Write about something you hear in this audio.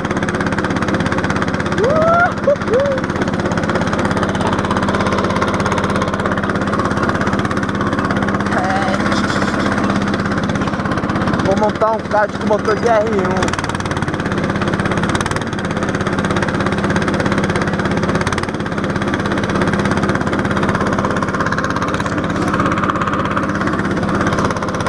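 Go-kart engines idle with a steady buzzing drone.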